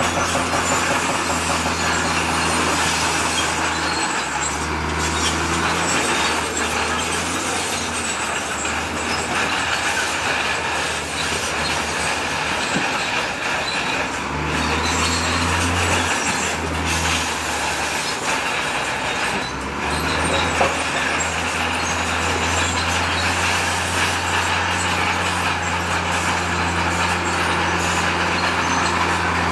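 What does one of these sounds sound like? A bulldozer engine rumbles and roars steadily.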